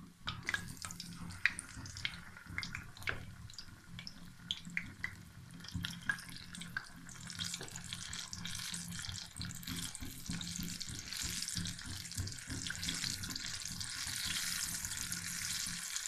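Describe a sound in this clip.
Battered potato pakoras sizzle and crackle in hot oil in a wok.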